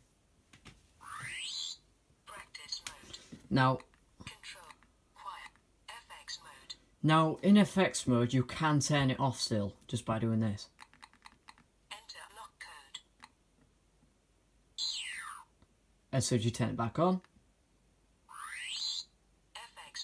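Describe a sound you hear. A toy sonic device gives off a rising and falling electronic whir.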